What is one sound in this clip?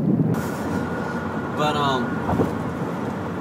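Another young man laughs.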